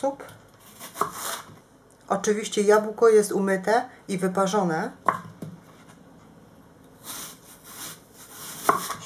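A knife slices through a crisp apple and taps on a wooden board.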